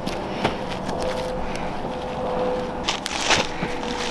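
A fire crackles in a pile of leaves.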